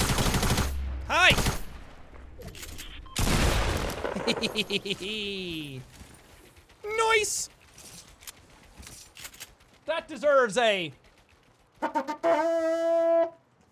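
A young man talks and exclaims with animation into a close microphone.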